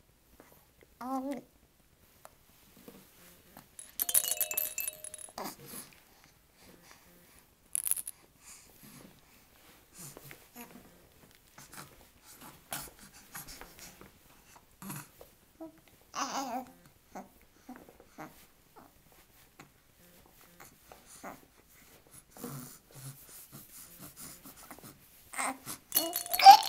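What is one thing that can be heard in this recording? A baby coos and babbles softly close by.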